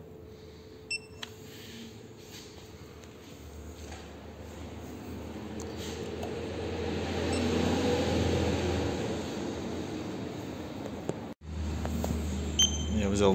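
An electronic gauge beeps briefly.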